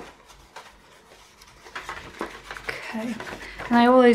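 Stiff paper rustles as hands lift it.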